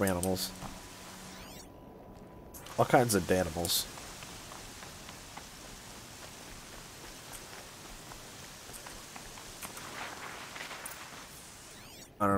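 Footsteps run through grass and over stones.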